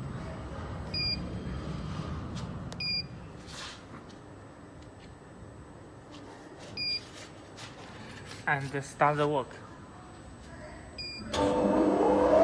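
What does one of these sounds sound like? Keypad buttons beep with short electronic tones.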